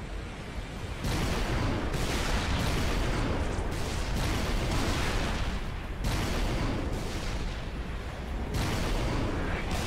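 Plasma weapons fire and explode in rapid bursts.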